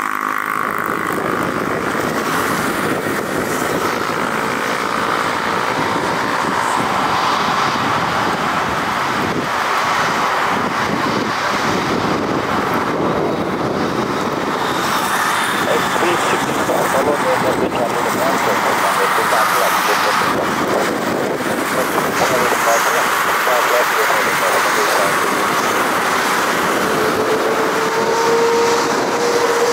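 A jet engine whines and roars steadily nearby.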